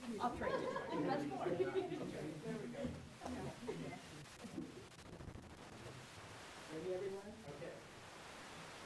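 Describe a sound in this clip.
An adult man talks calmly to a group.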